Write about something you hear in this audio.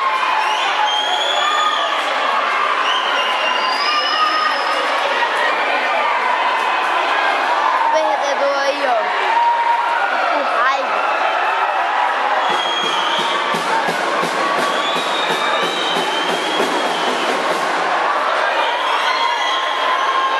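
A crowd of men shout and argue loudly in a large echoing hall.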